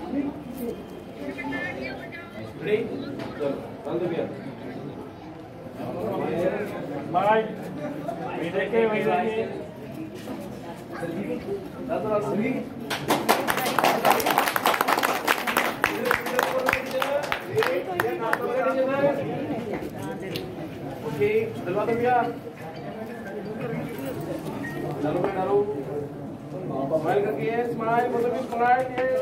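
A crowd of men and women chatter.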